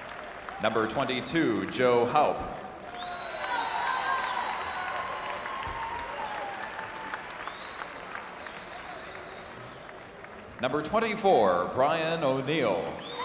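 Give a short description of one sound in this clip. A large crowd murmurs in an echoing arena.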